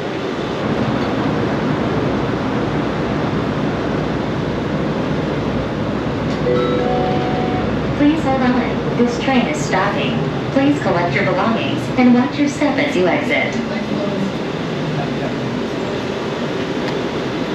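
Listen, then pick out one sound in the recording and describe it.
A train rumbles and hums steadily as it moves along the track.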